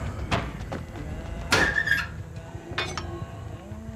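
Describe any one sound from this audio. A hatchet clanks as it is lifted off a wooden rack.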